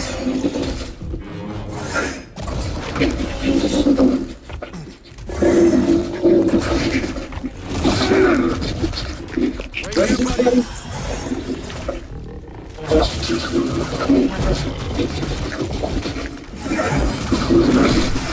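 A large beast growls and roars.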